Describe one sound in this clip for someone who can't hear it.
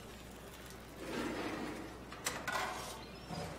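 A metal drawer slides open with a scrape.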